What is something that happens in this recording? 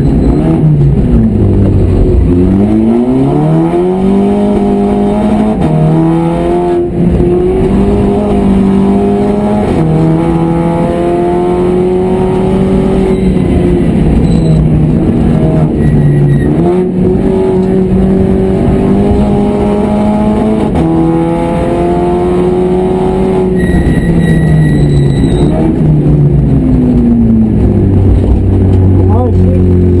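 A race car engine roars loudly inside the cabin, revving up and down through the gears.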